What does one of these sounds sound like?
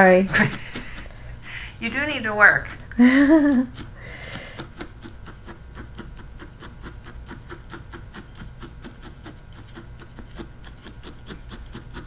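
A multi-needle felting tool stabs into wool.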